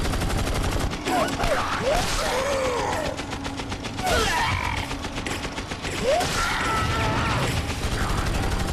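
A crowd of creatures groans and growls.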